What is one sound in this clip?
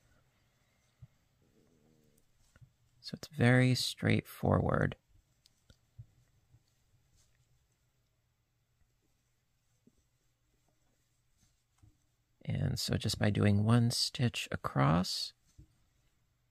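A crochet hook softly rubs and clicks against yarn.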